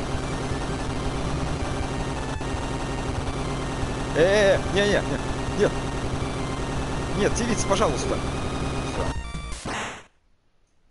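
Fast retro game music plays loudly.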